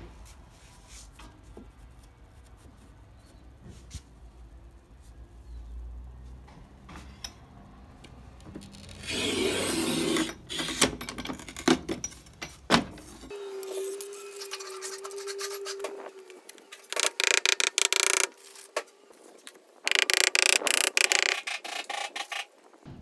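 A trowel scrapes across stone.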